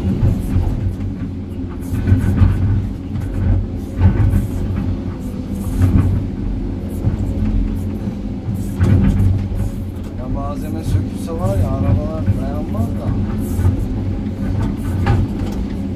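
Rocks and dirt tumble and clatter into a truck bed.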